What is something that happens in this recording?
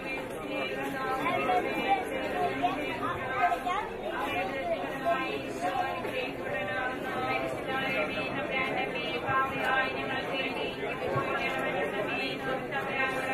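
Men talk in low voices nearby.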